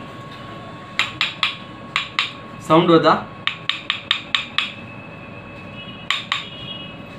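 Wooden combs clack and tap together.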